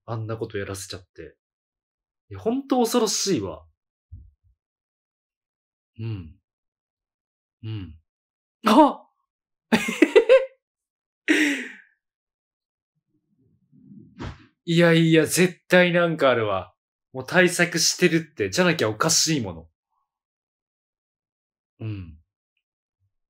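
A man speaks into a microphone with animation, in short bursts with pauses.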